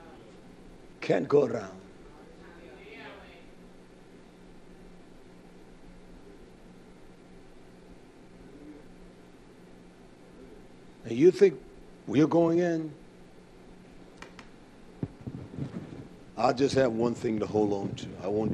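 A man speaks into a microphone in short bursts with long pauses, in a room with a slight echo.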